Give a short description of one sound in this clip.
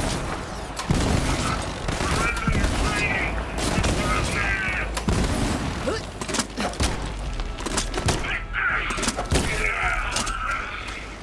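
Guns fire in rapid bursts of loud shots.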